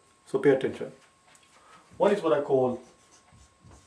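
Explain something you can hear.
A man speaks calmly nearby, as if explaining.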